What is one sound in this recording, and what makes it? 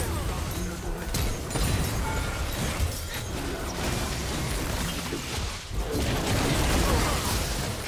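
Fantasy game combat effects clash and burst.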